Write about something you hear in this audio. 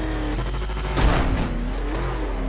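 A vehicle crashes with a loud thud.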